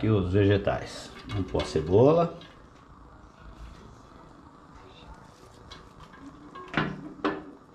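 Onion slices drop softly into a pot.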